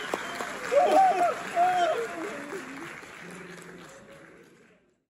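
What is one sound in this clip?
A man sings into a microphone in a large, echoing hall, and the singing fades away.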